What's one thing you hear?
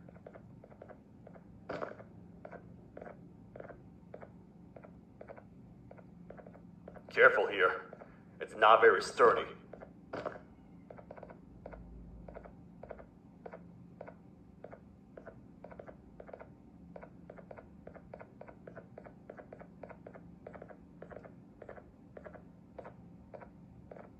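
Heavy footsteps thud at a steady pace.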